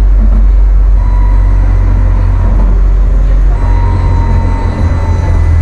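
A tram rumbles steadily along the rails with a deep hum.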